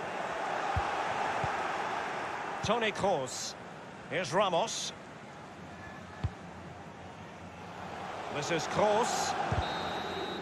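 A football is kicked sharply, again and again.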